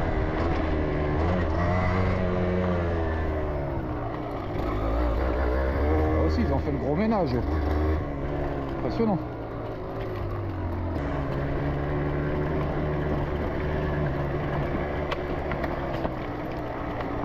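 A dirt bike engine hums and revs up and down close by.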